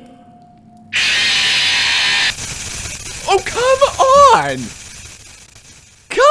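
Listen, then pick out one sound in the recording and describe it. A loud burst of harsh static hisses.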